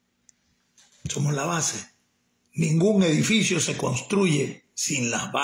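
An elderly man speaks close up, calmly.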